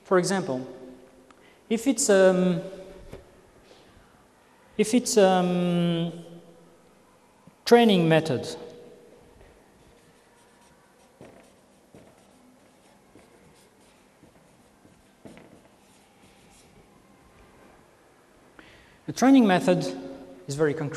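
A man speaks in short bursts, calmly lecturing.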